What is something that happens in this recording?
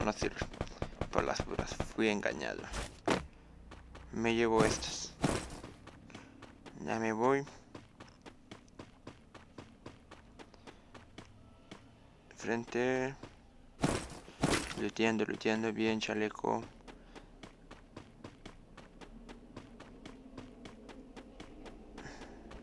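Quick footsteps run steadily over ground.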